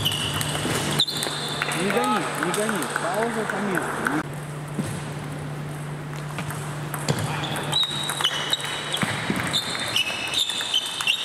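A table tennis ball clicks back and forth between paddles and the table in an echoing hall.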